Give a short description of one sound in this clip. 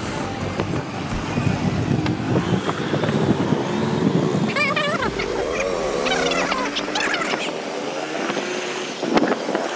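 A motorbike engine rumbles steadily up close.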